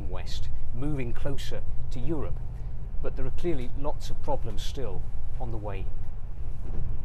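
A middle-aged man speaks calmly up close.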